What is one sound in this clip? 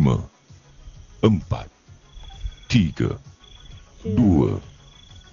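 A man speaks with animation through an online call.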